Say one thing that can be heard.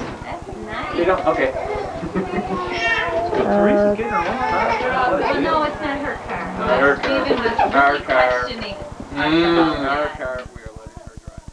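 Men and women chat with one another, heard through a camcorder microphone.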